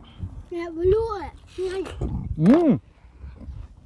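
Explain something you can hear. A man bites and chews juicy watermelon.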